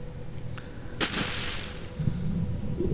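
A body plunges into water with a splash.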